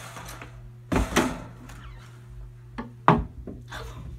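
A glass tank lid clatters as a lid is lifted and set down.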